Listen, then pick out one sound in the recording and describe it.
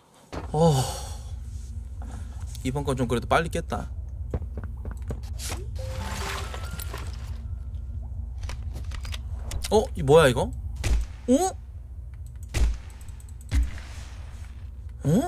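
A young man talks with animation and exclaims, close to a microphone.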